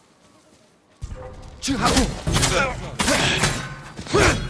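A sword slashes with sharp metallic ringing.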